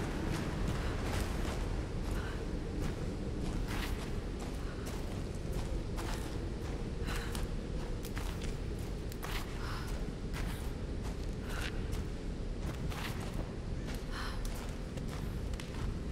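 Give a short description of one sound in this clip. Footsteps crunch on a stone floor at a steady walking pace.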